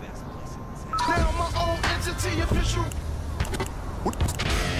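Music plays from a car radio.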